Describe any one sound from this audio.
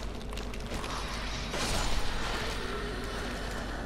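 A ghostly whoosh swells and fades.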